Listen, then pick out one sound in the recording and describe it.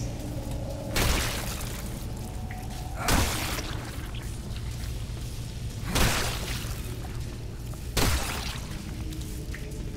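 Heavy footsteps thud on a metal grate.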